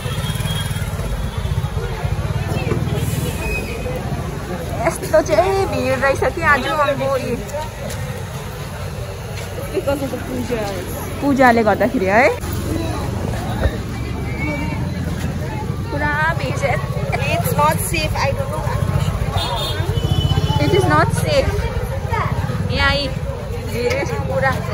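A busy crowd murmurs and chatters all around, outdoors.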